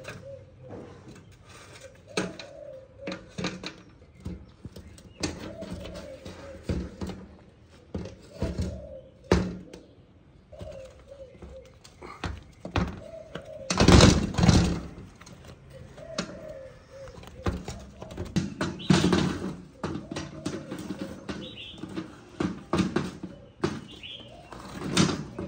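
A rubber tyre rubs and squeaks against a metal wheel rim as it is pried off.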